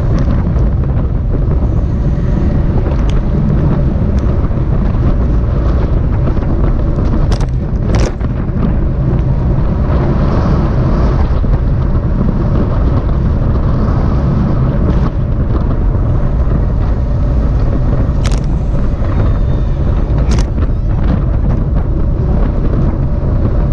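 Wind buffets loudly and steadily, as when riding fast outdoors.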